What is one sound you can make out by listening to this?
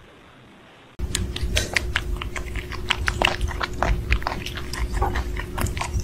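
Kittens squeak and suckle noisily.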